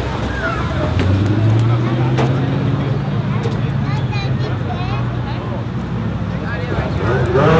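A race car engine rumbles low as a car rolls slowly.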